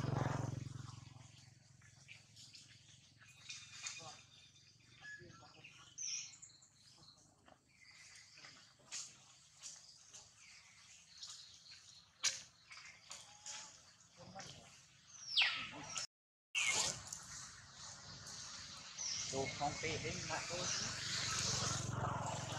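Leaves and branches rustle as a monkey shifts about in a tree.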